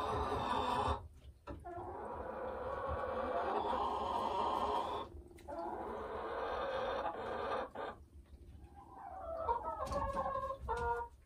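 A hen clucks and croons close by in a long, drawn-out song.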